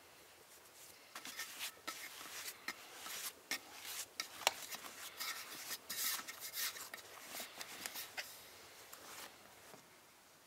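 Hands knead and squish soft dough in a bowl.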